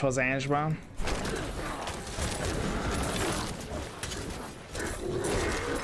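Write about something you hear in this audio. Game combat sounds clash and crackle in a busy fight.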